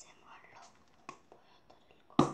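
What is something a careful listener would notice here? A plastic bottle crinkles and clicks in a girl's hands.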